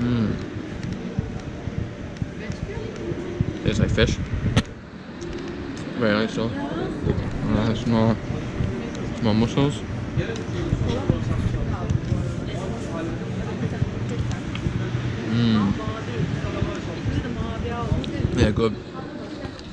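Wind rumbles on the microphone outdoors.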